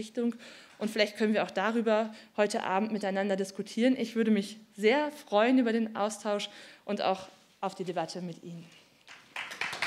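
A young woman speaks with animation through a microphone.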